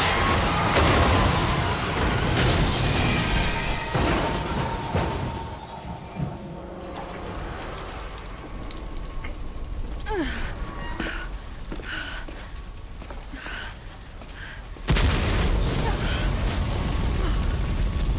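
Heavy rain falls steadily.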